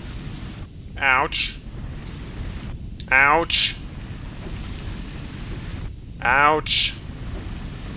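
A creature gives a quick rising screech, three times.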